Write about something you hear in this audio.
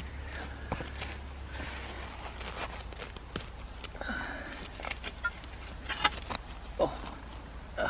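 A spade digs and scrapes into dry soil.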